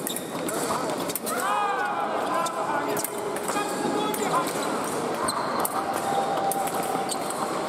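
Steel blades clink against each other.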